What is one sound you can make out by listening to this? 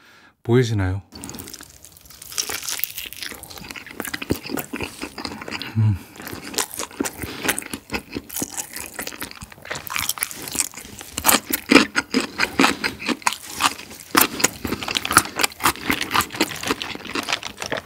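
Fried chicken crackles and squelches as gloved hands squeeze it.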